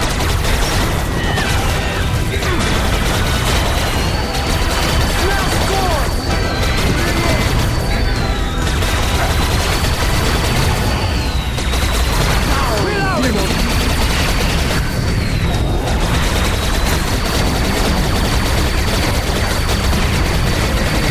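A heavy gun fires rapidly without pause.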